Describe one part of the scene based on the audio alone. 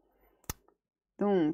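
A woman speaks briefly and calmly into a close microphone.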